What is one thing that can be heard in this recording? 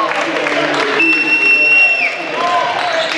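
A referee's whistle blows once.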